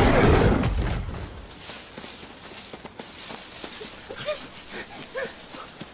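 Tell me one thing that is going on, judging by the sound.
Tall dry grass rustles and swishes as people push through it.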